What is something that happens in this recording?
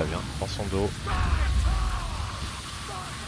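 A heavy blast rumbles.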